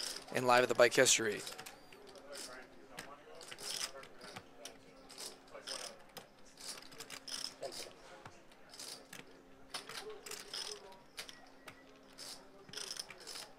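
Poker chips click and clatter softly as they are shuffled by hand.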